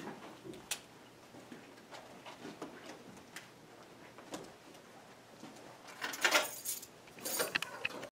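Paper rustles as a woman handles a sheet.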